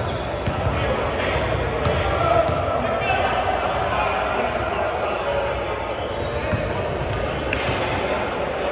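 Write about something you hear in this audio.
Young men talk and call out across an echoing gym.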